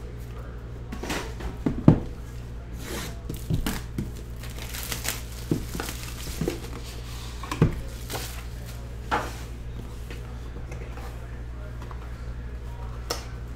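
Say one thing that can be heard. Cardboard boxes tap and knock as hands handle them.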